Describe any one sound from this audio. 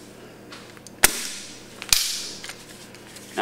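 An air impact wrench rattles in short bursts.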